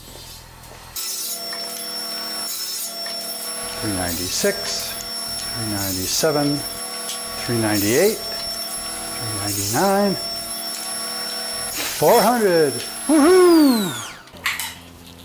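A band saw runs with a steady whine and cuts through wood.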